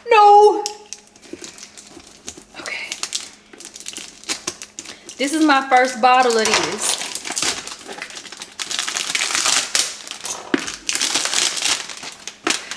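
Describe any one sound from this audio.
Cardboard packaging rustles and tears as it is opened.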